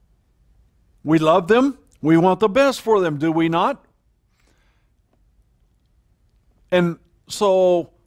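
An elderly man speaks with emphasis into a microphone, pausing between phrases.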